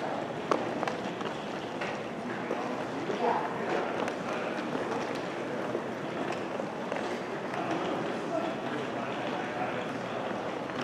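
Distant voices murmur through a large echoing hall.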